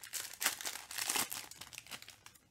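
A plastic wrapper crinkles and tears.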